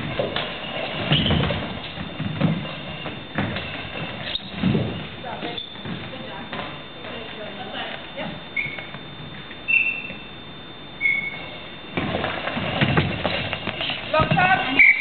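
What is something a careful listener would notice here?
Players thud as they dive onto a wooden floor.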